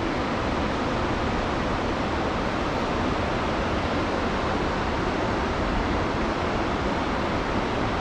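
Wind blows steadily outdoors, buffeting the microphone.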